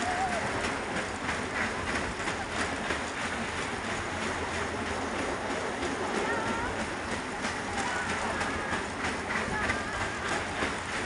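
A fairground ride rumbles and rattles as it spins.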